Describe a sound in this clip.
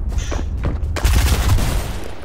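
A gun fires a shot nearby.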